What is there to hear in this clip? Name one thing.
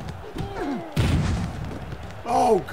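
A heavy body thuds onto a hard floor.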